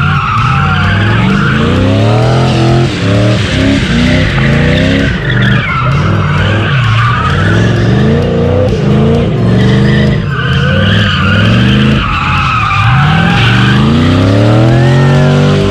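Tyres squeal loudly on the pavement.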